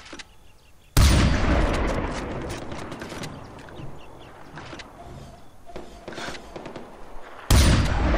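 A rifle fires loud shots that boom and echo.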